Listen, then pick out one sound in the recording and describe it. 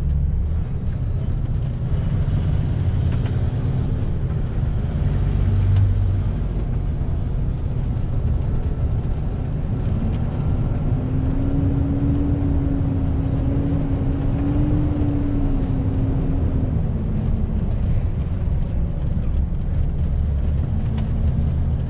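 A truck's diesel engine rumbles steadily from inside the cab.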